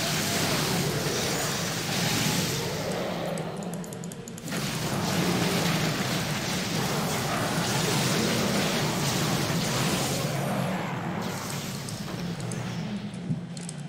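Game combat sounds clash and crackle with spells.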